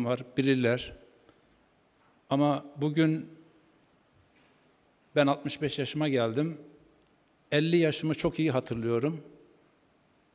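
An older man speaks calmly into a microphone in short phrases, with pauses between them.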